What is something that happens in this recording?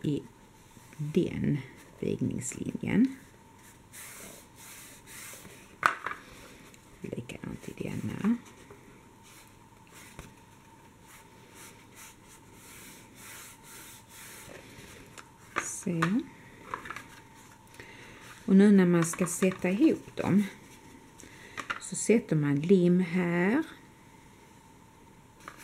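Stiff cardboard rustles and taps softly.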